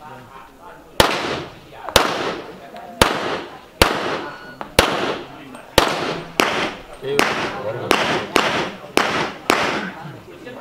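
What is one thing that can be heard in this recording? A pistol fires loud, rapid shots outdoors, each ringing out.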